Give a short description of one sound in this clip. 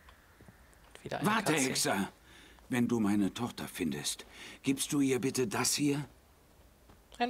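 A middle-aged man speaks firmly nearby.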